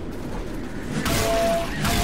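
A frying pan strikes with a loud metallic clang.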